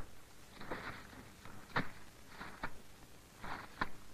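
Paper letters rustle as a hand pulls them from a metal box.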